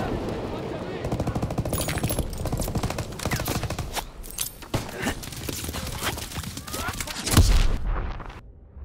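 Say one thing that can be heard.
Rapid gunshots crack nearby.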